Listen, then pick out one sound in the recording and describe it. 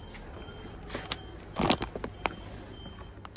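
A plastic snack wrapper crinkles as a hand grabs it.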